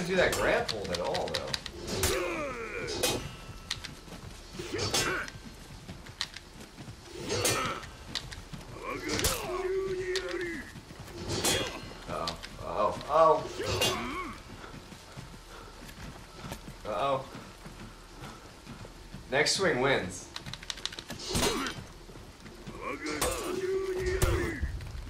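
Swords clash and clang sharply.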